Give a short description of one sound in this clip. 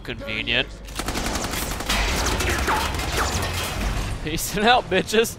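Gunfire rattles in bursts nearby.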